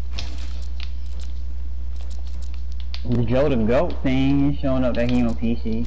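Building pieces snap into place with quick clicks.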